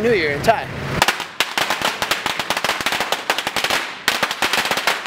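Firecrackers crackle and pop rapidly.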